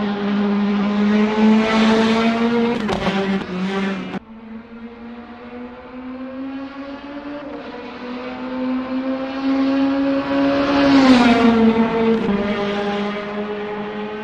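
A racing car engine roars at high revs.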